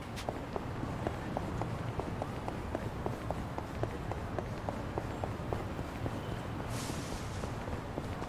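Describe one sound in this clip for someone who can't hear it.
Quick footsteps patter on pavement.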